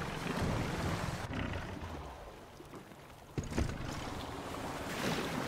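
Water laps and splashes around a small rowing boat.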